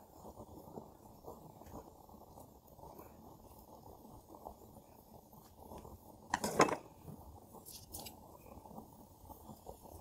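A woman speaks softly and closely into a microphone.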